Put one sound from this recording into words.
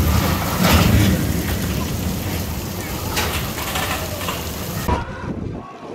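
A roller coaster train rumbles and clatters past on its track.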